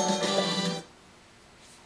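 Upbeat game music plays briefly through a television speaker.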